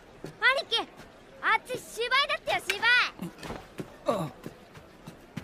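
A child speaks with excitement, close by.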